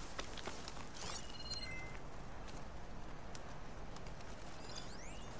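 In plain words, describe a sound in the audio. A shimmering, sparkling chime rings out and twinkles.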